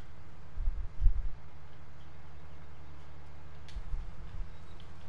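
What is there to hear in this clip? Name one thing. Heavy machinery thumps and rattles over a bumpy road.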